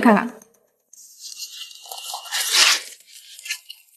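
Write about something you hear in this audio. A folder's pages rustle as they are handled.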